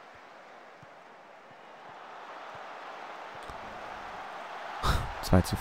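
A stadium crowd roars and cheers, growing louder.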